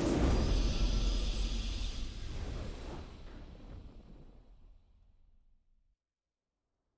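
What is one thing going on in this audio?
A triumphant game fanfare swells and then slowly fades away.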